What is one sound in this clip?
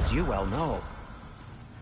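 A short warbling chime rings out.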